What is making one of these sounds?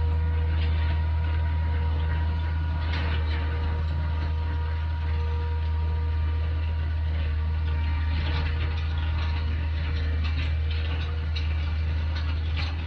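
A heavy machine's engine rumbles steadily.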